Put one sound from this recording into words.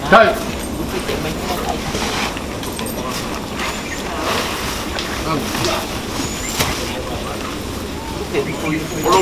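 Men and women talk and murmur nearby outdoors.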